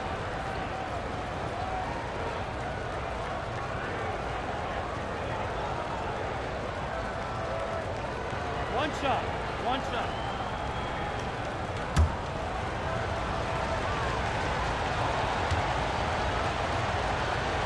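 A crowd murmurs steadily in a large arena.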